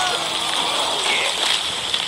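Water splashes as a cartoon shark leaps out.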